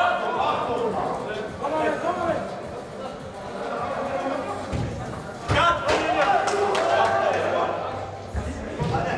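A football thuds against boards and is kicked.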